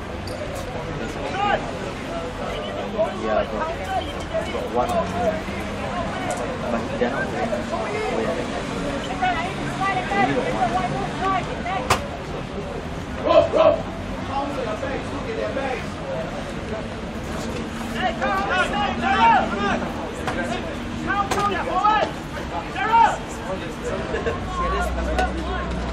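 Several young men and boys talk and shout outdoors at a distance.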